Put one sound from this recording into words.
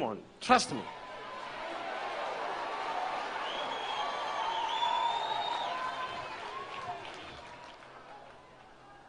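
A large crowd cheers and murmurs.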